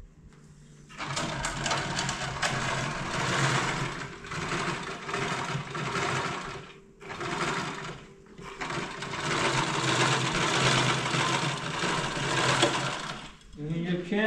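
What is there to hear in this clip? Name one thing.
A sewing machine runs, stitching fabric.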